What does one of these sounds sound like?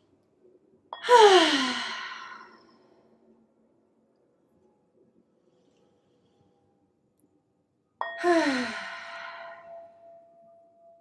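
A metal singing bowl is struck and rings out.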